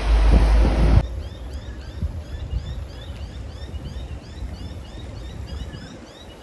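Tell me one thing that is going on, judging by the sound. A shallow stream flows and babbles nearby.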